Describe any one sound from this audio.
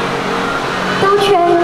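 A young woman sings into a microphone through a loudspeaker.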